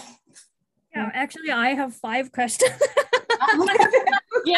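A young woman laughs and speaks with animation over an online call.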